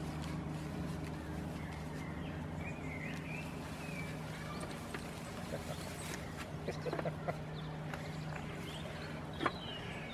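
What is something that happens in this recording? Goats chew and rustle hay up close.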